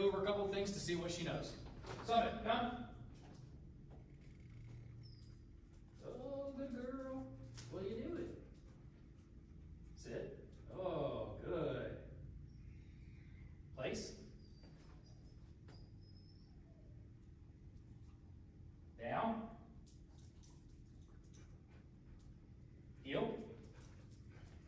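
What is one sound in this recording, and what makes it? A man speaks in short bursts, a little distant, in an echoing room.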